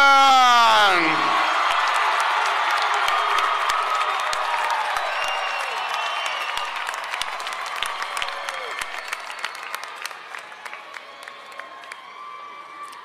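A large crowd cheers and whistles outdoors, slowly fading.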